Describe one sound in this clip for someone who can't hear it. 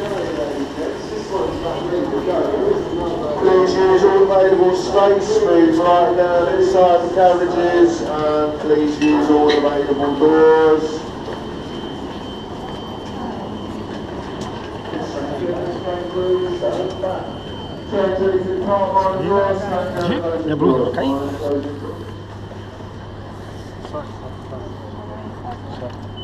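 A crowd murmurs and chatters in a large echoing space.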